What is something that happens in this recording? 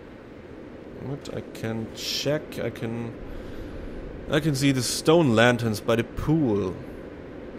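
A man talks into a close microphone in a relaxed, casual way.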